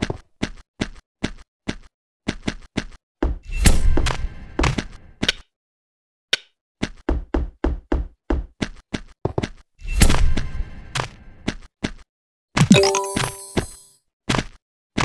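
Game sound effects of rapid clicks and hits play in quick succession.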